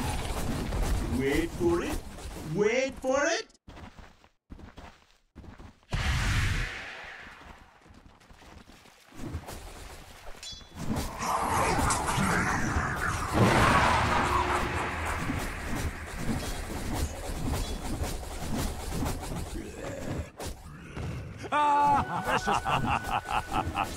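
A young man talks into a close microphone with animation.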